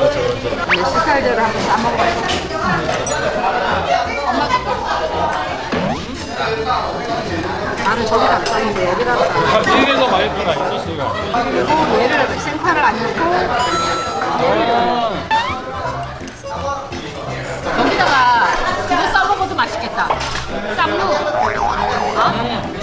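A second older woman answers and chats.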